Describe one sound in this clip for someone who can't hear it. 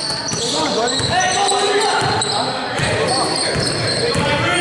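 A basketball bounces with dull thuds on a wooden floor.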